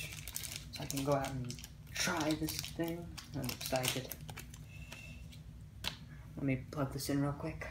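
Plastic packaging crinkles and rustles in someone's hands.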